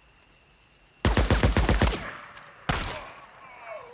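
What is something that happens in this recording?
A pistol fires a rapid burst of loud shots.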